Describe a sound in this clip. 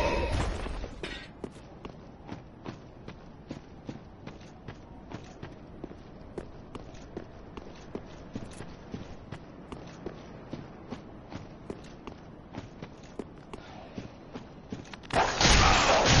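Armoured footsteps crunch steadily over stone and gravel.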